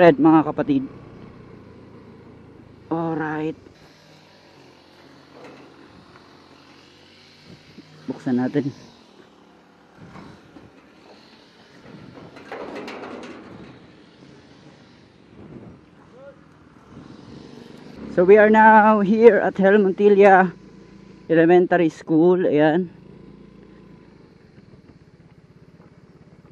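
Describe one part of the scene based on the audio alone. A motorcycle engine hums at low speed.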